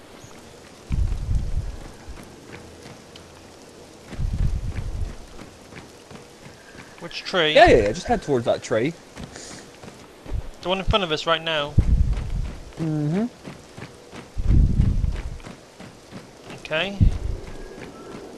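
Heavy footsteps thump on the ground.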